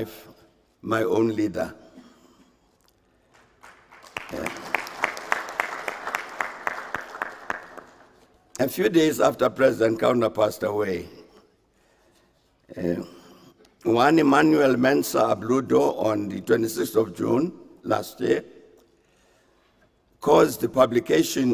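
An older man speaks calmly and formally into a microphone, heard through a loudspeaker in an echoing room.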